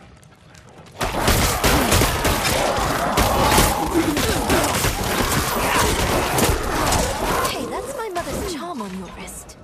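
Weapons clash and slash in a loud, busy fight.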